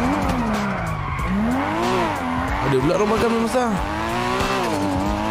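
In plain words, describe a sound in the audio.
A car engine revs up and down loudly.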